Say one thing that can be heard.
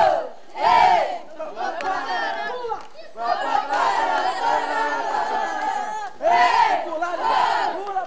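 A group of children cheer and shout excitedly close by.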